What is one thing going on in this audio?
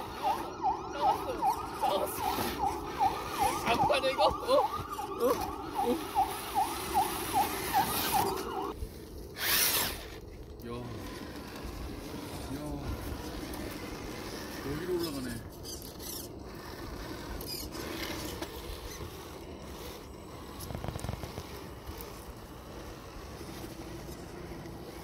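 Rubber tyres scrape and grind on rock.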